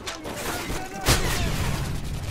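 A knife slashes with a sharp, heavy thud.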